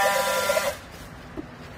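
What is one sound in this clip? A battery strapping tool whirs loudly as it pulls a plastic strap tight.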